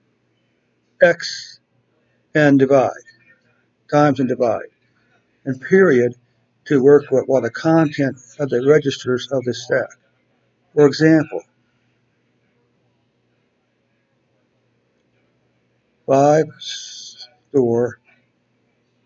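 A man speaks calmly and close to a microphone, explaining in short phrases.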